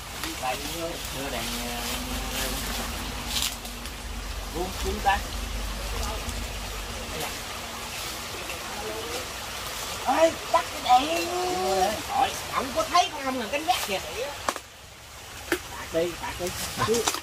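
Men talk excitedly nearby.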